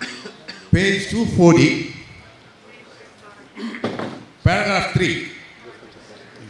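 An elderly man speaks in short phrases through a microphone in an echoing hall.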